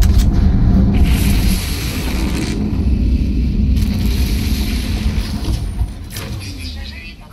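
A rushing whoosh swells and fades away.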